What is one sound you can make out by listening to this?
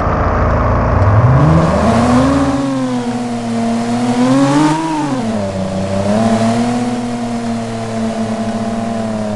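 A car engine revs up and changes pitch as the car speeds along.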